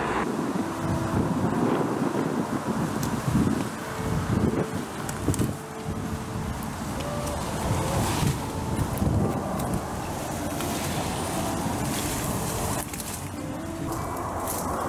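Leaves rustle and brush as a man pushes through dense bushes.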